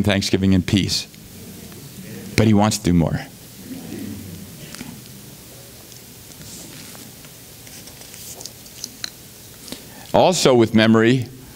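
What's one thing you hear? A man speaks with emphasis through a microphone, pausing between phrases.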